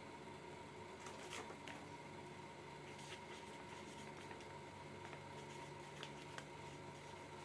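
Paper rustles and crackles close by.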